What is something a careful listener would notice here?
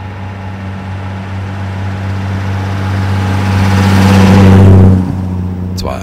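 A car engine grows louder as the car passes close by, then drops away.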